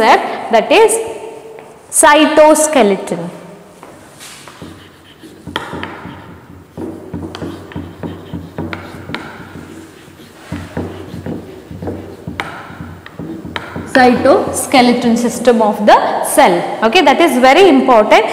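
A young woman speaks clearly and steadily, as if teaching.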